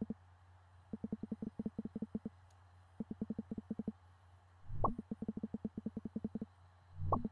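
Quick, low electronic blips chatter in short bursts as text is typed out.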